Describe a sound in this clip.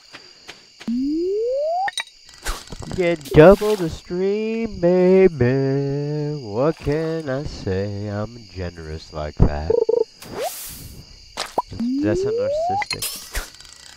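A fishing line whizzes out with a rising whistle as a rod is cast.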